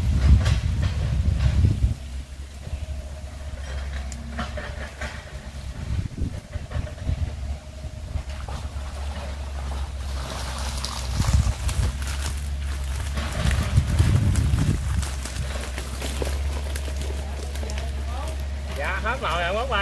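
Wind rustles outdoors.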